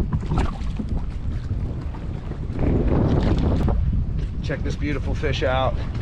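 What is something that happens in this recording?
A hooked fish splashes at the water's surface.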